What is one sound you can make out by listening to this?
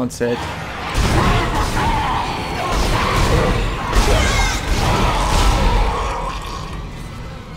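Rapid energy gunfire blasts and crackles.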